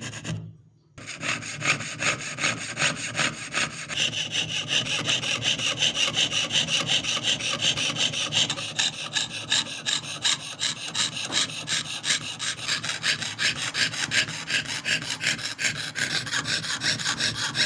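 A fine saw rasps quickly back and forth through thin metal.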